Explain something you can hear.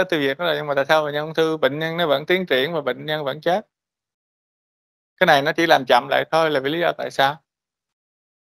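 A man lectures calmly through a microphone in an online call, pausing between phrases.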